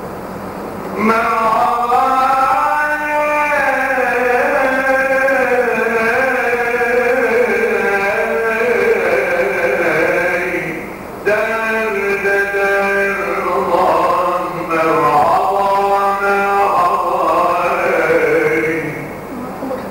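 A man chants in long, drawn-out sung phrases into a microphone.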